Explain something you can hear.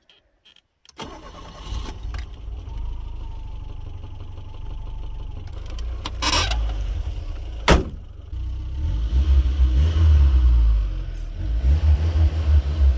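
A car engine cranks, starts and idles with a low rumble.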